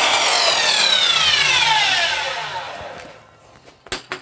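A power saw whirs and winds down.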